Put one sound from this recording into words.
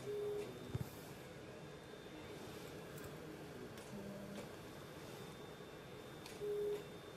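An electrosurgical unit gives a steady, pitched beep while it cuts.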